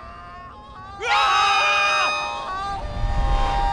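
Several animated animals scream together in panic.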